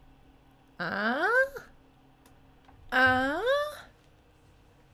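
A young woman makes two long, rising exclamations close to a microphone.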